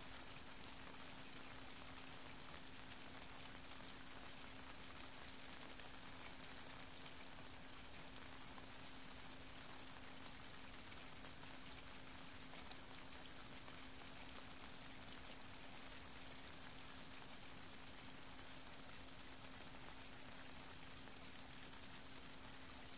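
Small waves lap gently against rocks at the shore.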